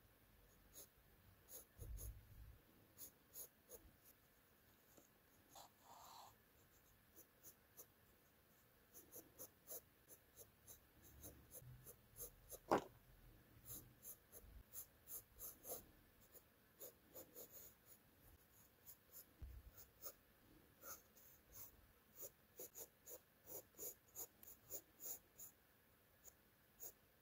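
A pencil scratches and taps lightly on paper, close by.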